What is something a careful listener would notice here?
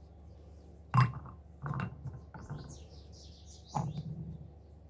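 A stone knocks against a bowl as it is set down.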